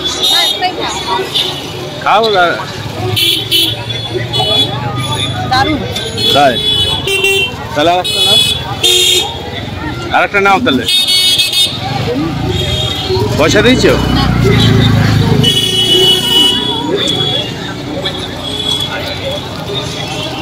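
A busy street crowd chatters all around outdoors.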